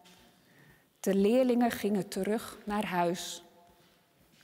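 A woman reads aloud calmly in a room with a slight echo.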